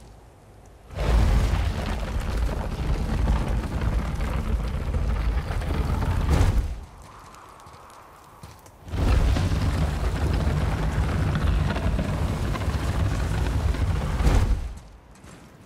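A heavy stone block grinds and scrapes loudly as it is pushed along the ground.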